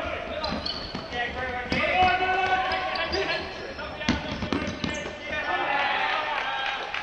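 Young men shout to each other across a large echoing hall.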